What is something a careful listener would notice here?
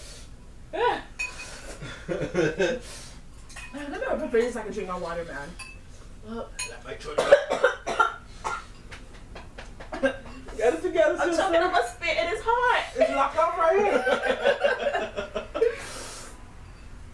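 Several young people laugh together.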